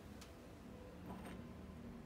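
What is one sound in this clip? A small ceramic cup scrapes as it is lifted from a wooden block.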